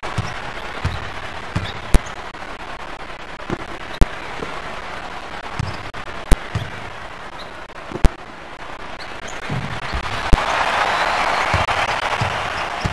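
An arena crowd cheers and swells louder.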